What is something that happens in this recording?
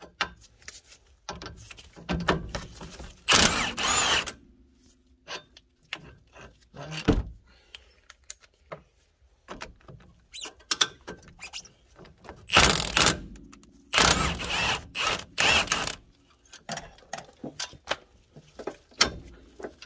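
Metal tools clink and knock against car brake parts.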